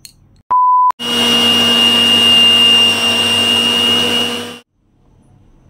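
An electric blender whirs as it blends a liquid.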